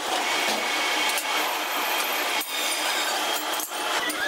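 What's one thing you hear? A metal lathe whirs as it runs.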